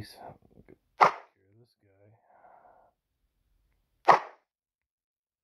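A bow shoots an arrow with a sharp whoosh.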